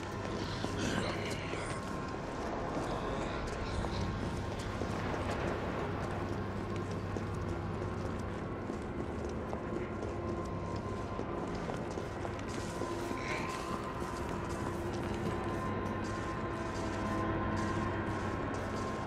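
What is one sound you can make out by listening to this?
Footsteps tap on hard ground at a walking pace.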